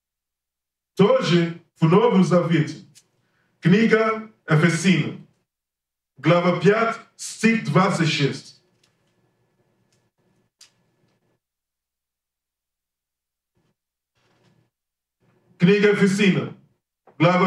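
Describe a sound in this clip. A man speaks calmly into a microphone in bursts, with long pauses between them.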